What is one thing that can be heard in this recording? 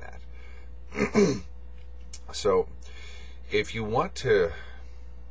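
A middle-aged man speaks calmly and close up, in short phrases.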